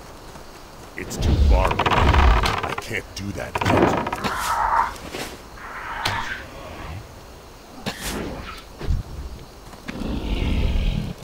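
A bow twangs again and again as arrows fly.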